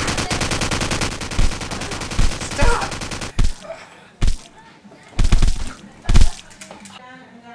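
Young men shout and laugh close by.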